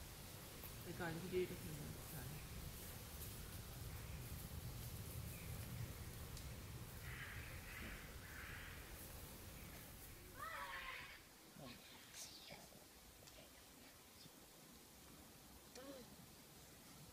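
Children talk and call out outdoors.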